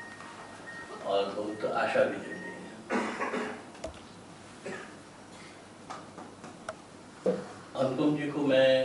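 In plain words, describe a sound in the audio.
An elderly man speaks slowly and deliberately through a microphone in a large echoing hall.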